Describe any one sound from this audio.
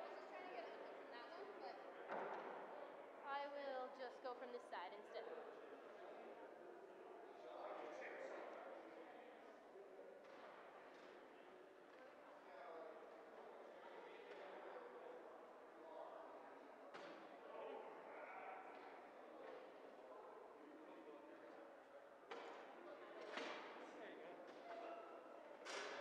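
Men and women chat quietly and indistinctly in a large echoing hall.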